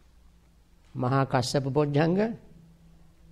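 An elderly man speaks briefly and calmly, close by.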